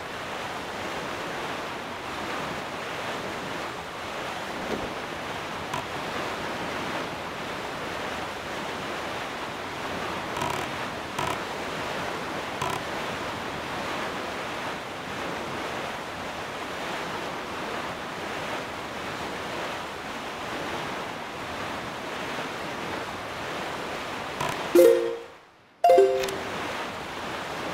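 A small sailboat rushes through open water.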